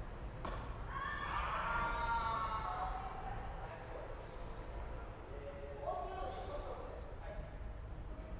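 A man calls out across the court, echoing in a large hall.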